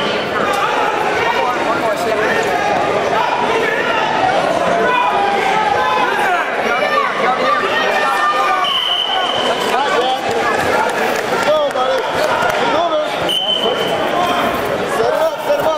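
Spectators shout encouragement in an echoing gym.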